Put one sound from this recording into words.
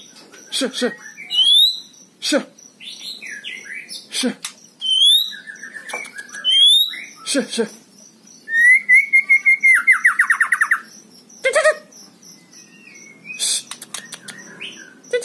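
A caged songbird sings loud, varied whistles, chirps and rapid trills close by.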